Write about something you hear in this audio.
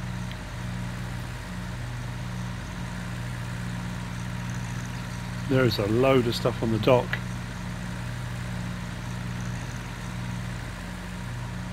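A tractor engine hums steadily at low speed.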